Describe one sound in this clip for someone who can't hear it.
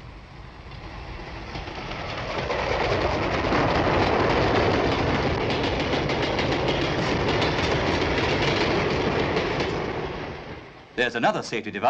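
A freight train rumbles past on the tracks, wheels clattering rhythmically.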